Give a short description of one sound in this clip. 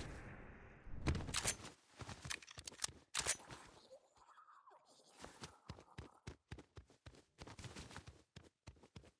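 A game character's footsteps patter quickly across a hard surface.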